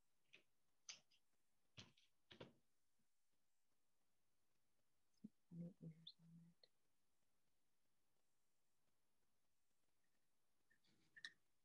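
A tin can knocks and clatters as it is handled.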